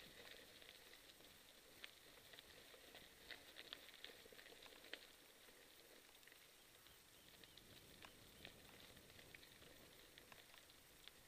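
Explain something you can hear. Bicycle tyres crunch and rattle over a gravel trail.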